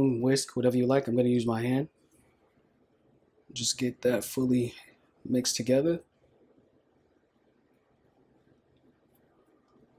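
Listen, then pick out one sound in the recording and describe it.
Hands rub and toss flour in a bowl with soft dry rustling.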